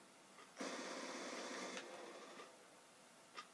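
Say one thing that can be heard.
Video game gunfire and blasts roar loudly from a television speaker.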